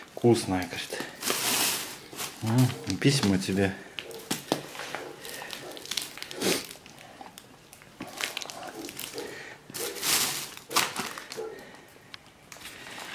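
A bear cub smacks and slurps wetly while eating.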